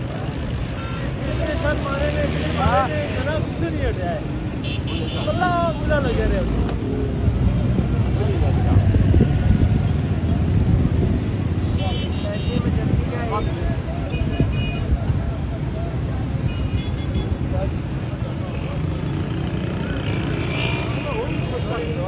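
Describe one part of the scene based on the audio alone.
A large crowd outdoors shouts and chants in a loud continuous roar.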